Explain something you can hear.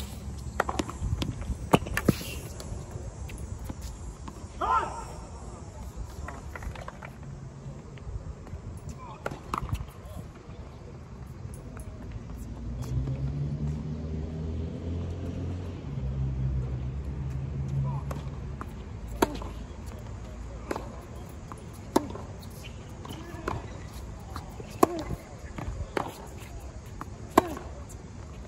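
Tennis balls are struck sharply by rackets, outdoors.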